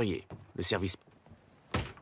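A man's footsteps thud on a wooden deck.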